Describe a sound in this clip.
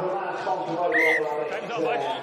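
A referee blows a short, sharp whistle blast.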